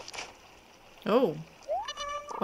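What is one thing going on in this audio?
A fish splashes out of the water.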